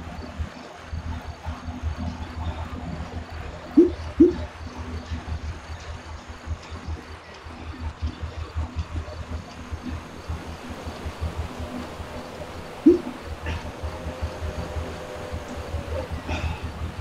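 An indoor bike trainer hums steadily under pedalling.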